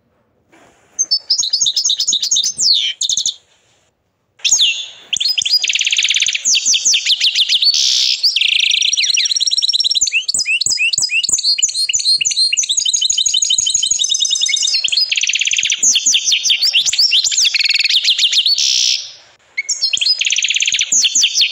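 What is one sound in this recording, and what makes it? A canary sings a loud, fast song of trills, chirps and rolling warbles, close by.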